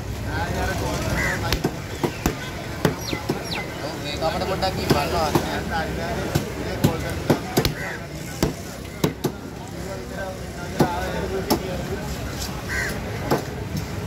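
A heavy knife chops into a fish on a wooden board.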